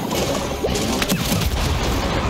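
Fiery blasts boom and crackle.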